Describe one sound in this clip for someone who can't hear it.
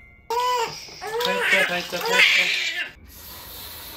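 A newborn baby cries close by.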